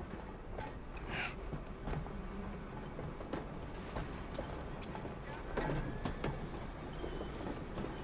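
A streetcar rumbles past outdoors.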